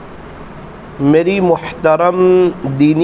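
A man recites in a chanting voice into a microphone.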